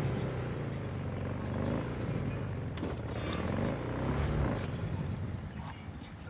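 A motorcycle engine hums and revs at low speed.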